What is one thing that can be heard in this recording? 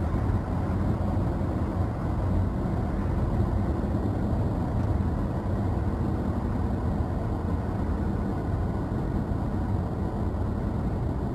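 Road noise rumbles steadily inside a car driving fast on a highway.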